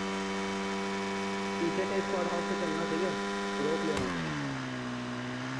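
A motorbike engine drones steadily, then drops to a lower hum.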